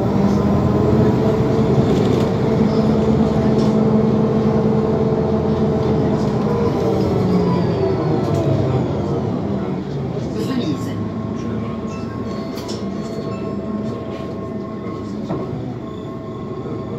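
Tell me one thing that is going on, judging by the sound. An engine hums steadily from inside a moving vehicle.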